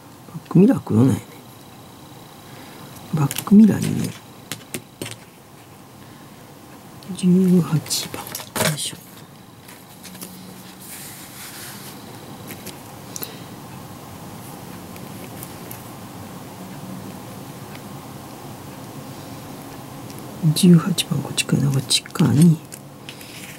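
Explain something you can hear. Plastic model parts click and rattle as hands handle them.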